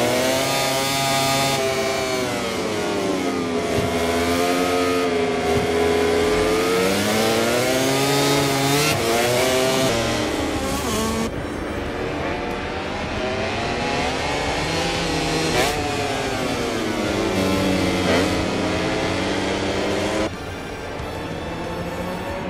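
Racing motorcycle engines whine loudly, rising and falling in pitch as they speed up and slow down.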